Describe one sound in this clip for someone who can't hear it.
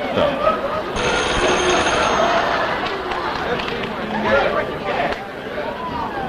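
An audience laughs loudly.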